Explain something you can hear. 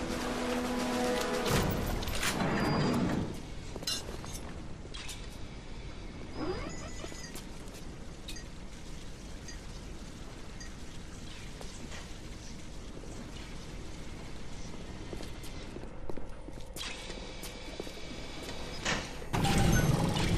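Footsteps tap on a hard tiled floor.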